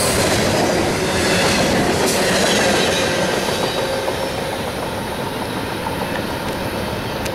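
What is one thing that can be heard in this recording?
A freight train rumbles past close by, its wheels clattering on the rails, then fades into the distance.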